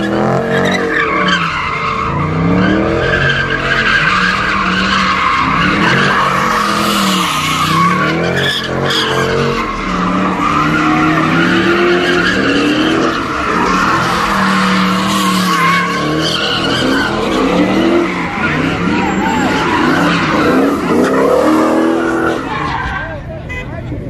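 A car engine revs hard and roars up and down.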